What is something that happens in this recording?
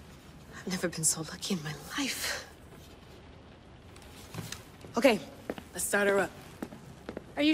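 A young woman speaks cheerfully and close.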